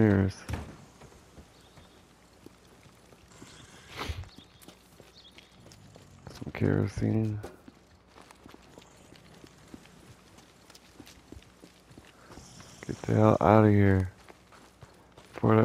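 Footsteps run quickly over pavement and dirt.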